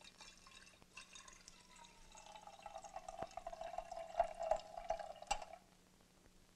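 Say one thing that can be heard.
Water pours into a metal cup, rising in pitch as it fills.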